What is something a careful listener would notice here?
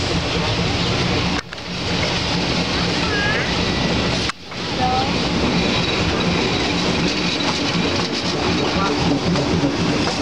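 A diesel locomotive rumbles loudly past close by.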